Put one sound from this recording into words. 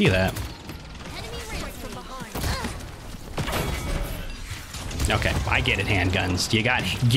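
A young man talks into a headset microphone.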